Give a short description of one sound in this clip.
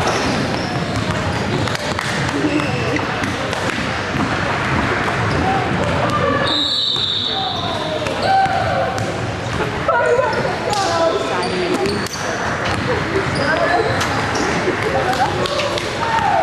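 Basketballs bounce on a wooden floor.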